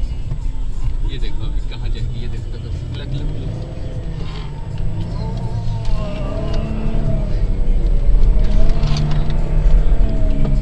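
A car engine roars and revs as it climbs through loose sand.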